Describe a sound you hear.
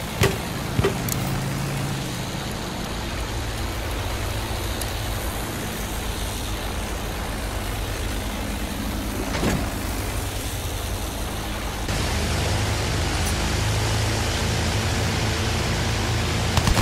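A propeller engine drones steadily throughout, growing louder near the end.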